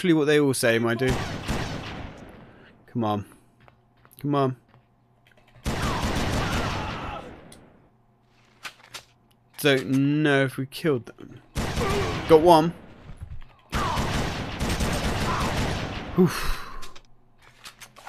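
Gunshots boom and echo.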